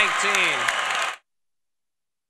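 A man speaks into a microphone in a large hall.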